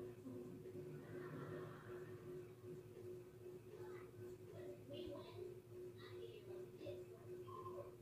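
A small brush strokes softly across a fingernail.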